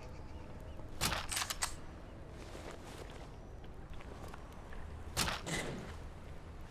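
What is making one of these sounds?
Clothing rustles and thuds as a body is lifted onto a shoulder.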